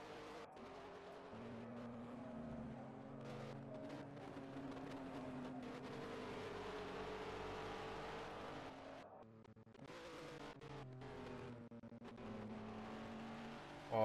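Racing car engines roar at high revs, shifting pitch as the cars accelerate and brake.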